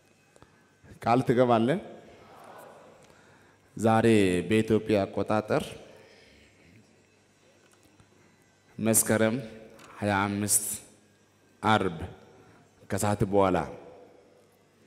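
A man preaches forcefully into a microphone in a large echoing hall, in loud bursts with pauses.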